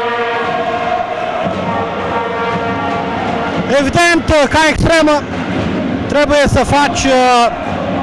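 Spectators murmur and cheer in a large echoing hall.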